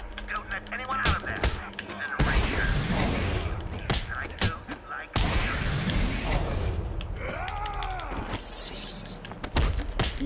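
Punches and blows land in a fast fight.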